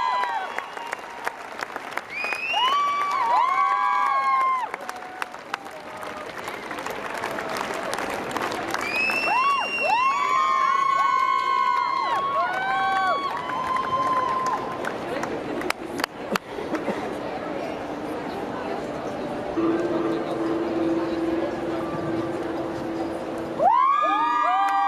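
A crowd of people chatters loudly all around.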